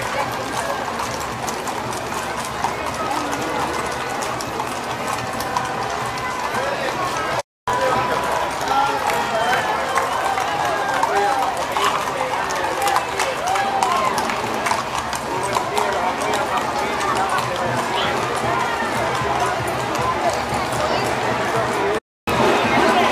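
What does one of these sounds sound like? Horse hooves clop on pavement.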